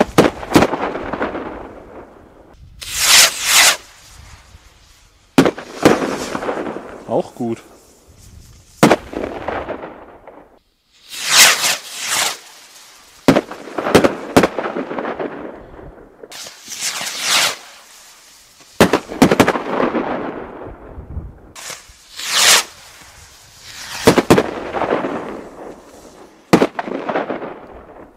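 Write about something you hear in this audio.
Fireworks bang loudly, one after another.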